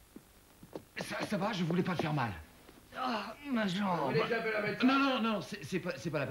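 A young man shouts in distress close by.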